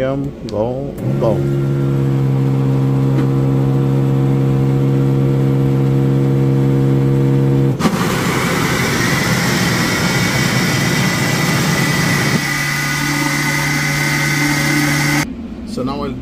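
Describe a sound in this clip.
A blender motor hums steadily, then whirs loudly as it blends.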